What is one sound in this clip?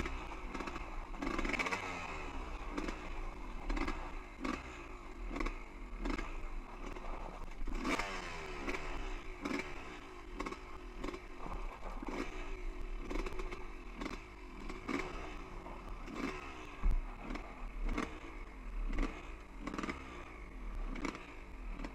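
A dirt bike engine revs up and down, close by.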